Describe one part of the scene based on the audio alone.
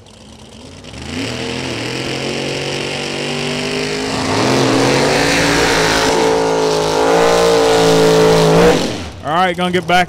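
A drag racing car's engine roars loudly as it launches and speeds away down the track.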